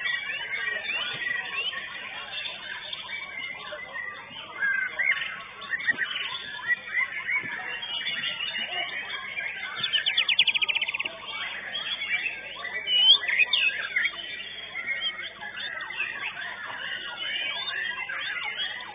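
Many songbirds chirp and whistle busily all around.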